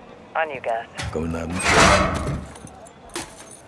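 A heavy metal bin lid bangs open.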